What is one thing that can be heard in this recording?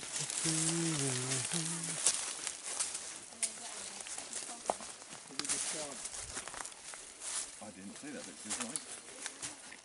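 Footsteps crunch through undergrowth outdoors.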